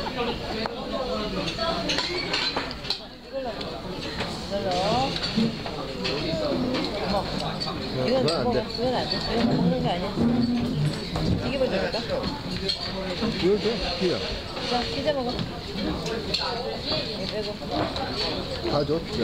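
Men and women chatter and talk nearby in a busy room.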